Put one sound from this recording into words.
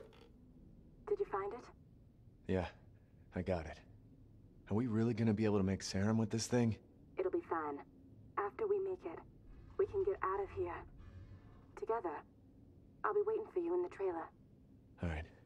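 A man speaks calmly over a telephone.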